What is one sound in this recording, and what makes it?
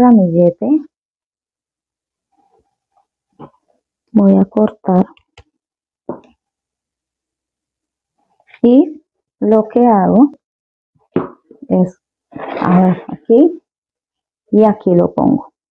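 A woman talks calmly and close by, in short phrases with pauses.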